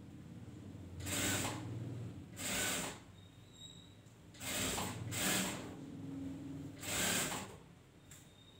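A sewing machine runs in short bursts, whirring and stitching.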